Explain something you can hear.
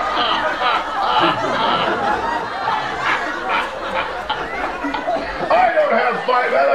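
An elderly man laughs loudly nearby.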